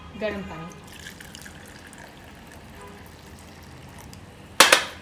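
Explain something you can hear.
Water pours into a teapot.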